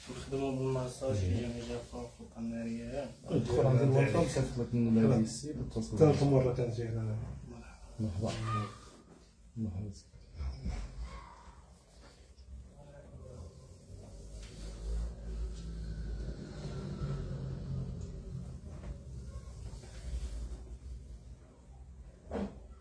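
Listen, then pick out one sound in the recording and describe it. Hands rub and slide over oiled skin.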